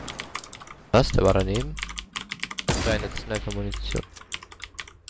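A sniper rifle fires a loud shot.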